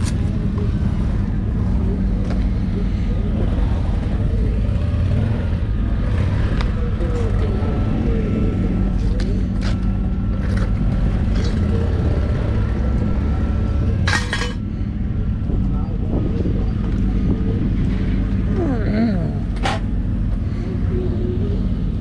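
Gloved hands rustle and handle the parts of a motorcycle.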